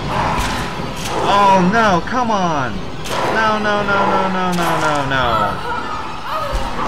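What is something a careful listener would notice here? A young woman screams and cries out in pain.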